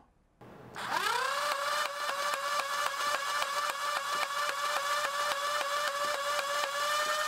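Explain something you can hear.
A toy blaster fires foam darts in a rapid stream of clicks.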